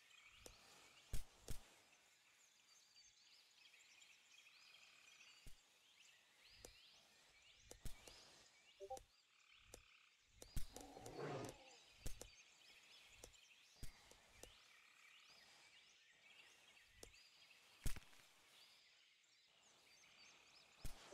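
Footsteps thud softly through grass.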